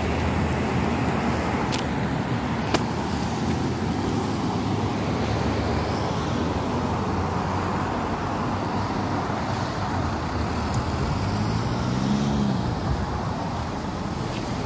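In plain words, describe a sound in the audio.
Cars drive past on asphalt.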